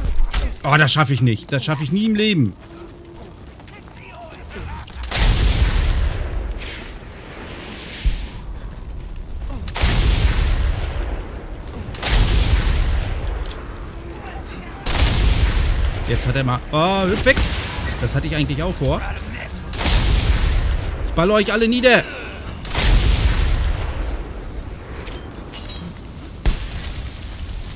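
Heavy blows thud in a close fight.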